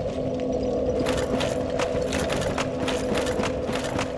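Armoured footsteps crunch on gravel.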